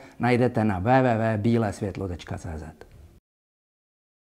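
A middle-aged man speaks with animation into a clip-on microphone, close by.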